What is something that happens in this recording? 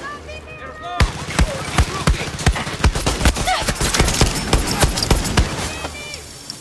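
Rapid gunshots crack loudly in quick bursts.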